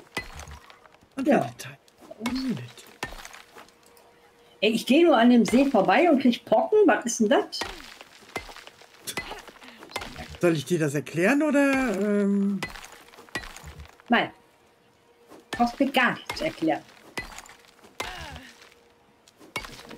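A stone hammer knocks against rock with dull thuds.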